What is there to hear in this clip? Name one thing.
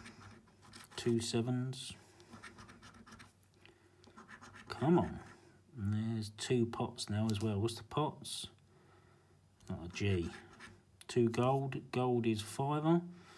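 A middle-aged man talks calmly and close to a microphone.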